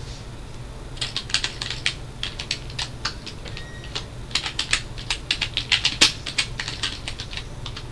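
Keys click rapidly on a keyboard.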